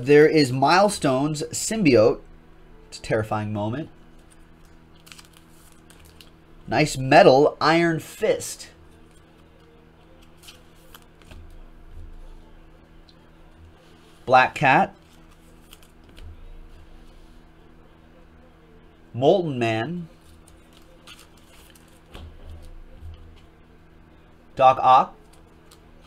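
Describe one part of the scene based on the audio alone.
Trading cards slide and tap softly as they are handled.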